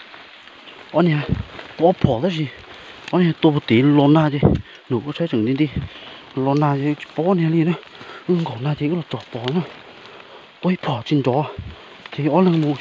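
A deer bleats loudly and repeatedly, close by.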